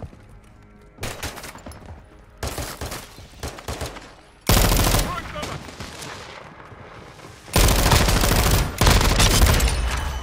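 Gunfire rattles in loud bursts.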